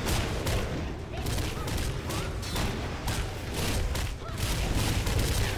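Heavy blows and fiery bursts crash repeatedly as a monster fights.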